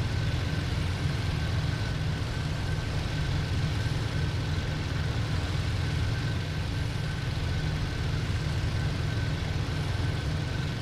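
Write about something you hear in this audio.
A propeller engine drones steadily and loudly.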